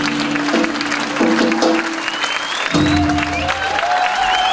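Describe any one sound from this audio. A band plays its final loud notes.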